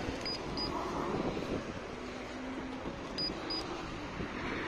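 A handheld gauge beeps in short double chirps.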